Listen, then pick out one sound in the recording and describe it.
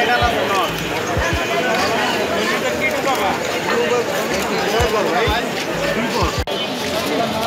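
Many men and women chatter in a busy crowd outdoors.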